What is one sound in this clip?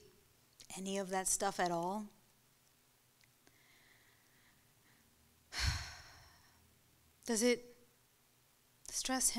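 A young woman recites slowly and expressively into a microphone, with long pauses between phrases.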